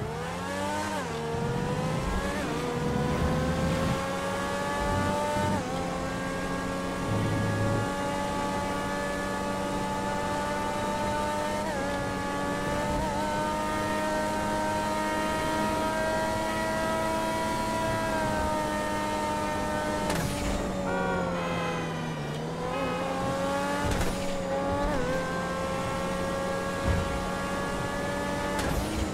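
A race car engine roars at high revs, rising in pitch with each gear and dropping at each shift.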